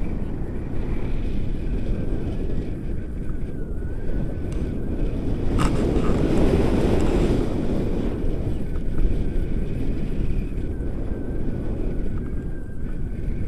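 Strong wind buffets and roars loudly outdoors throughout.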